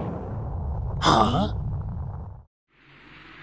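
A man shouts in anger.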